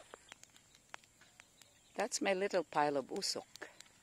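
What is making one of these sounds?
A small fire crackles and pops.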